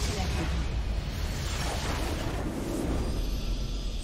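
Game spell effects crash and blast in a loud burst.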